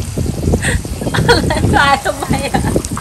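A woman laughs up close.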